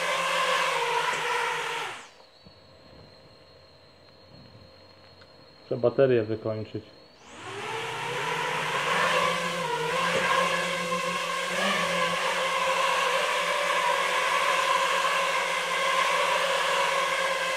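The propellers of a small drone whir with a high, steady buzz, stopping briefly and then revving up again.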